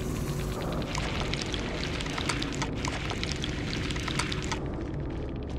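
A game counter ticks rapidly as points tally up.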